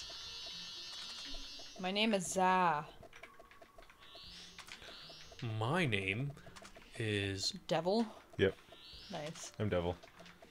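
Short electronic menu blips chirp now and then.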